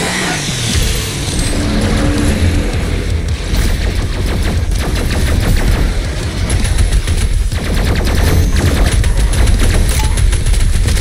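Explosions rumble deeply.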